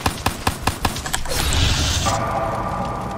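A burst of fire whooshes loudly.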